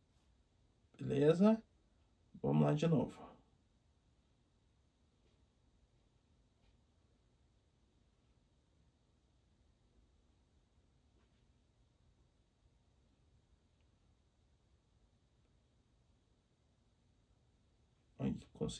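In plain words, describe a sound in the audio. A young man speaks briefly and calmly, close to a microphone.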